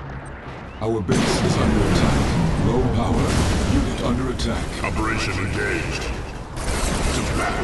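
Laser beams fire with loud crackling blasts.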